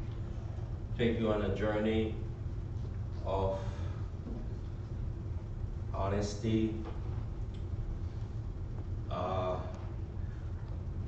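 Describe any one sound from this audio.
A man speaks slowly and deliberately through a microphone in an echoing hall, with long pauses.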